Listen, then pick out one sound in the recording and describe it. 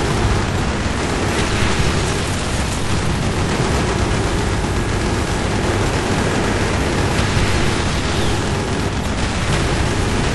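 A helicopter's rotor thumps and its engine roars close by.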